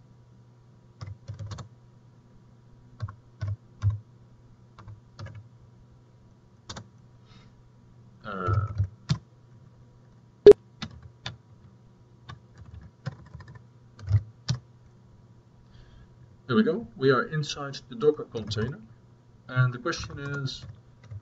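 Keys click on a computer keyboard in short bursts.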